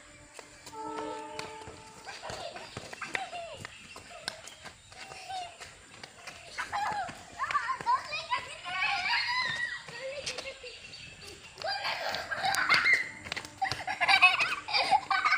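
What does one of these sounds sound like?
A football thuds as it is kicked on concrete.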